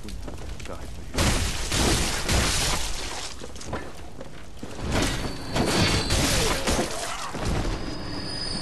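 A blade slashes and strikes in a fierce fight.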